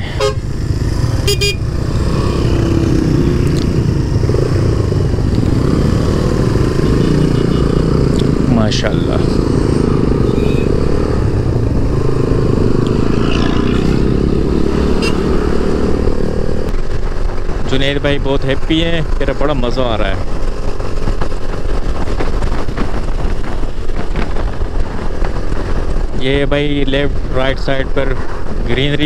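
A motorcycle engine drones steadily while riding.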